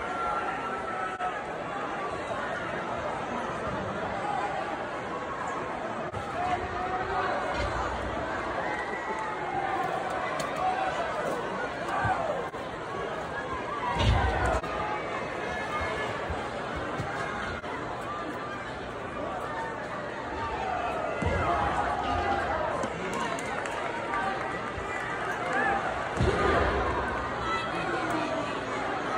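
A large crowd cheers and chatters throughout a big echoing arena.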